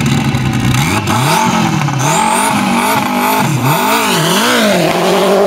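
A race car engine revs up and down in quick bursts.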